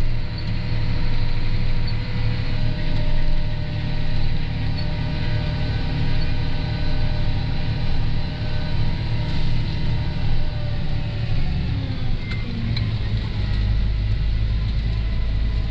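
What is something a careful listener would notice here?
A tractor engine drones steadily, heard from inside the cab.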